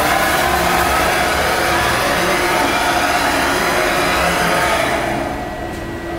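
A machine motor whirs steadily.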